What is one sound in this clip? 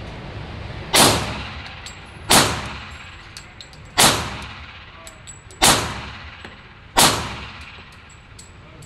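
A pistol fires loud shots that echo in a large indoor range.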